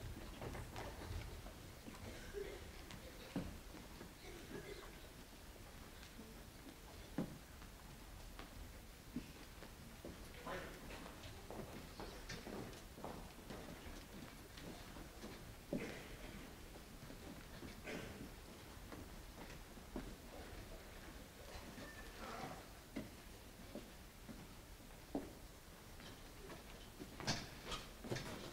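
Footsteps shuffle and knock on a wooden stage as singers move into place.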